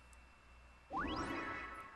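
A cartoon puff of smoke bursts with a soft whoosh.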